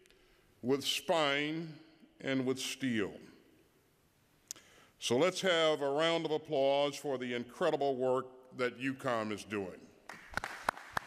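An older man speaks calmly through a microphone in a large echoing hall.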